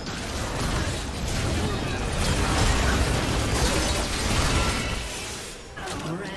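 Magic blasts and hits crash loudly in a fast video game battle.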